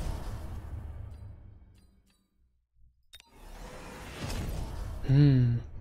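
Electronic game sound effects play.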